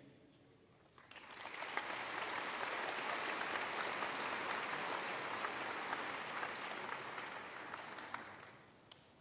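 A large crowd applauds in a large hall.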